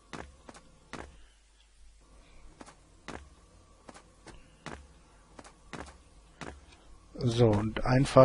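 Footsteps tap lightly at a steady pace.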